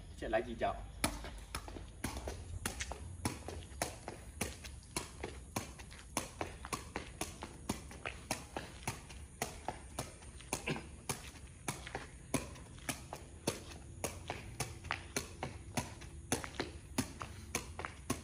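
A football thumps against a foot in a steady rhythm.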